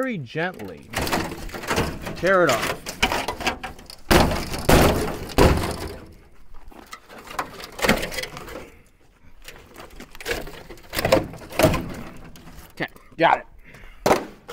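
Metal and plastic parts knock and scrape in a truck bed.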